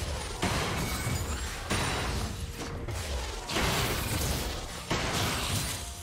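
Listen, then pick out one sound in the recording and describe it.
Fantasy battle sounds of spells and attacks burst and crackle in rapid succession.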